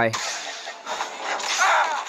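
A lightsaber hums and swings.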